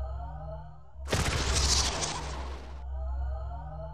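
A bright whooshing burst sounds as a flash fills the scene.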